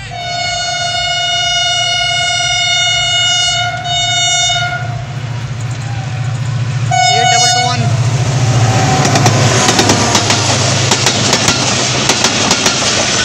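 A diesel locomotive engine rumbles deeply as it passes close by.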